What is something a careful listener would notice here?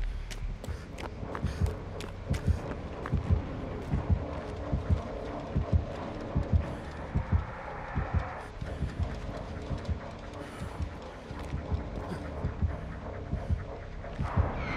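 Tall grass rustles as someone moves through it.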